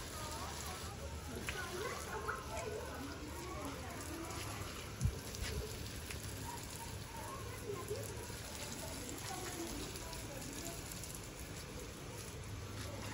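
A hose nozzle sprays a fine hissing mist of water.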